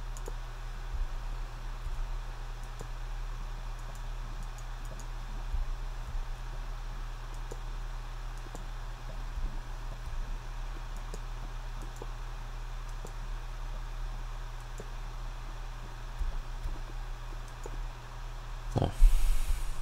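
Lava bubbles and pops softly now and then.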